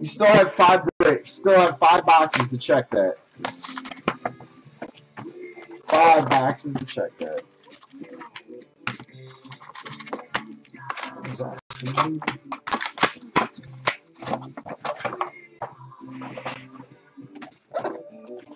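Foil card packs rustle and crinkle as they are handled.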